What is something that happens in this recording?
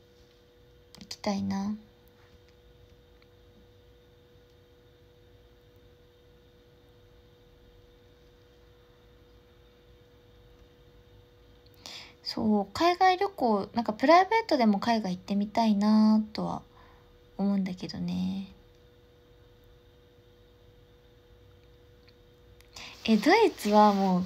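A young woman speaks calmly and close up, with pauses.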